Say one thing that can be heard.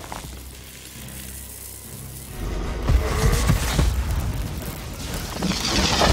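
Electricity crackles and sizzles.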